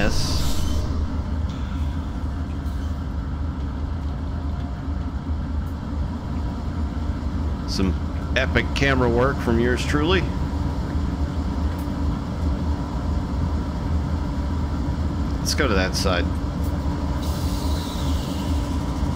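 A diesel locomotive engine rumbles steadily and deeply.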